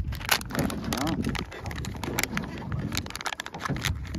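A plastic packet crinkles as it is torn open.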